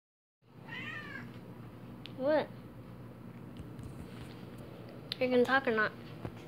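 A cat meows close by, several times.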